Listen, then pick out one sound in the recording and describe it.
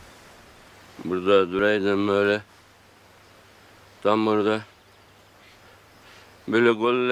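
An elderly man speaks in short, halting bursts.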